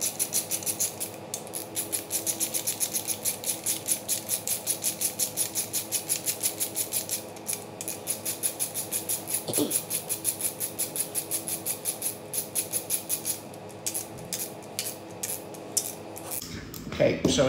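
A ratchet wrench clicks rapidly back and forth.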